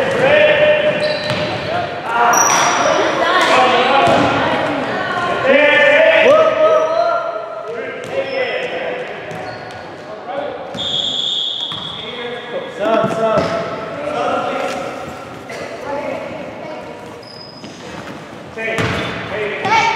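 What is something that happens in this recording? Young girls shout and call out to each other in a large echoing gym.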